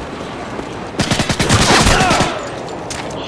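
Silenced gunshots pop in quick bursts.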